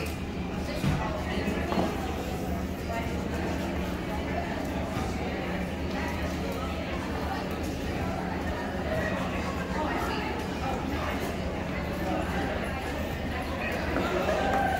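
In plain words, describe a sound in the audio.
Several adults talk with one another nearby in a large echoing hall.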